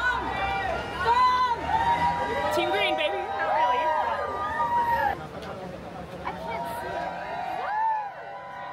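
A crowd of people shouts and cheers nearby outdoors.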